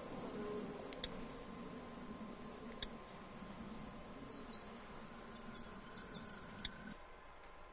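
Short electronic clicks sound as menu options are selected.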